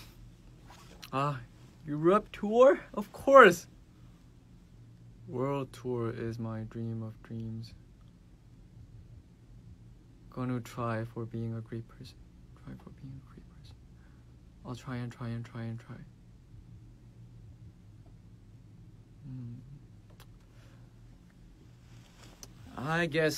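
A young man speaks calmly and close to a microphone, in short bursts with pauses.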